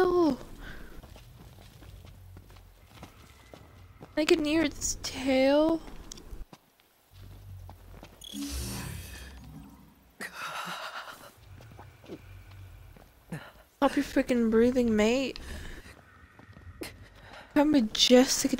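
Footsteps rustle through dry grass.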